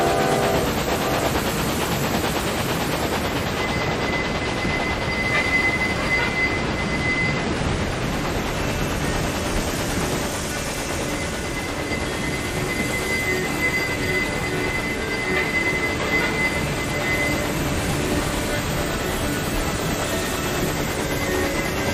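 A steam locomotive chugs and rumbles steadily along the rails.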